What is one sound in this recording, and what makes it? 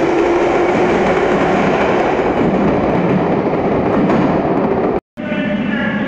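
A subway train rumbles out of an echoing station.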